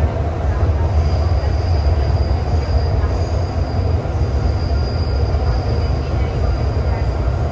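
Train wheels whine with a high, steady hum.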